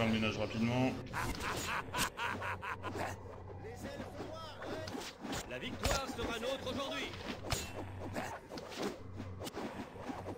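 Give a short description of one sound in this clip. Weapons clash in a game battle.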